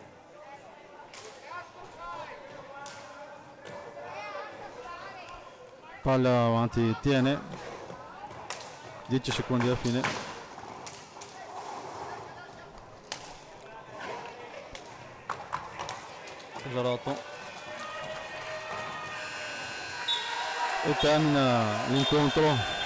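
Roller skates roll and scrape on a hard floor in a large echoing hall.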